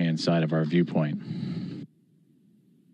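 A man speaks briefly through a microphone.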